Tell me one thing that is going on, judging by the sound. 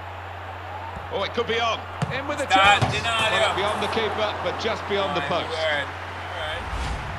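A stadium crowd roars loudly as play nears the goal.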